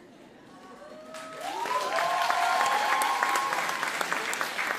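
Audience members whoop and shout with excitement.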